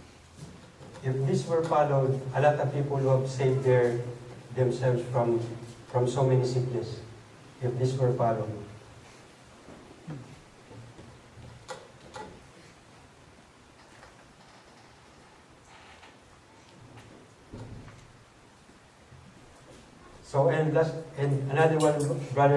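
A man speaks calmly through a microphone and loudspeakers, with long pauses.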